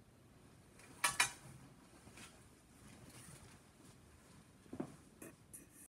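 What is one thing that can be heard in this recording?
A man stands up from a chair and steps away.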